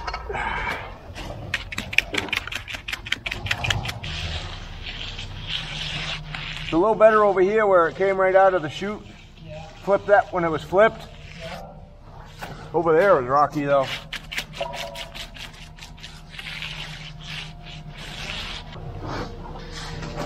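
A trowel scrapes and smooths wet concrete.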